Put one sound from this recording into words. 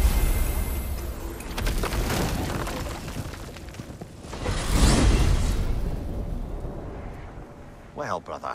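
A heavy stone door rumbles and grinds open.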